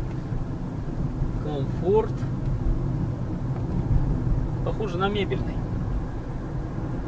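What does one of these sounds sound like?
A car drives along a paved road with a steady low rumble.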